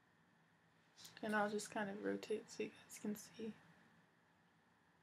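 A young woman speaks briefly and calmly, close by.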